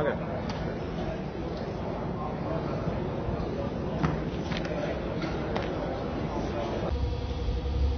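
A crowd murmurs in a busy echoing hall.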